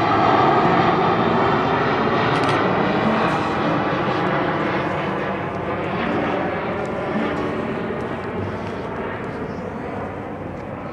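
Wind buffets loudly outdoors, slowly easing.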